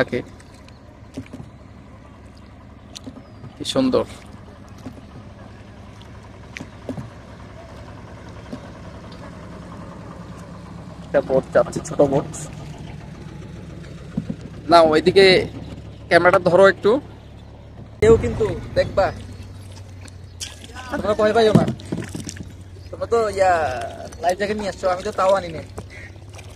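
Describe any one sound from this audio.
Paddles dip and splash in calm water.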